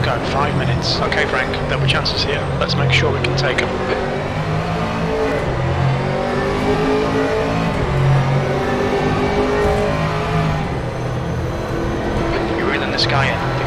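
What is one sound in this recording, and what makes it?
A race car engine roars steadily, its pitch rising and falling through the gears.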